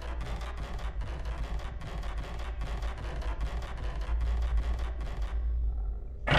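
Footsteps thud quickly on a wooden floor.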